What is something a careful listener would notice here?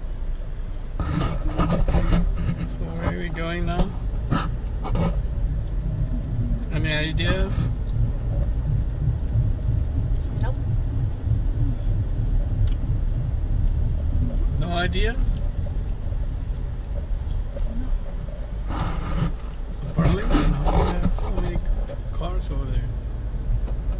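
A man talks casually close by, inside a car.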